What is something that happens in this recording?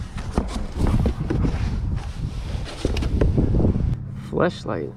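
Hard plastic parts knock and clatter as they are lifted out.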